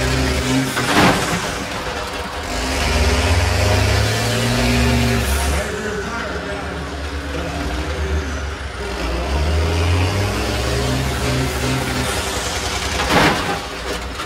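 Buses crash into each other with loud metal bangs.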